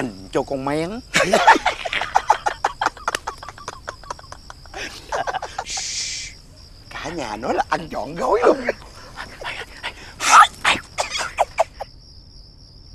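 A man talks loudly and with animation.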